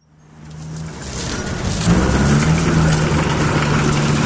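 Heaps of coins clink and rattle as they are pushed along.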